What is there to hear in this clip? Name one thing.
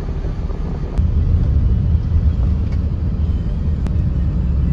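A bus engine rumbles as the bus drives along.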